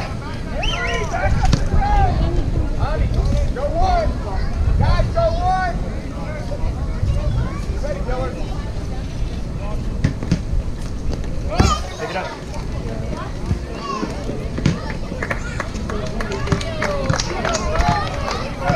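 Spectators and players shout and call out outdoors.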